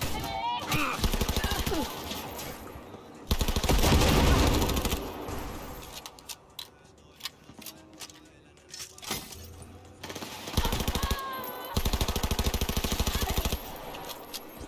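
A rifle fires rapid bursts of gunshots that echo loudly.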